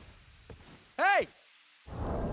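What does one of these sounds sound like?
A menu chime rings out briefly.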